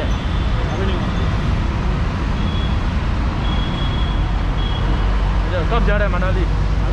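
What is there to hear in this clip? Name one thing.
Outdoor street noise rumbles steadily in the background.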